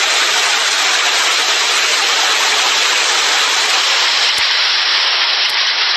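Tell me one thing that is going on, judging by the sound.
Hail pours down hard, roaring steadily outdoors.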